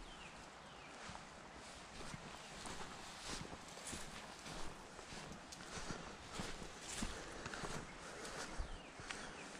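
Footsteps crunch on sand and dry leaves.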